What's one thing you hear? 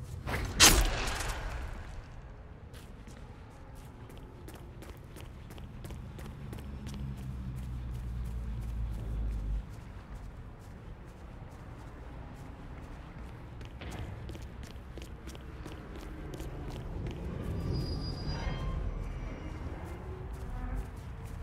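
Quick soft footsteps patter on gravel and grass.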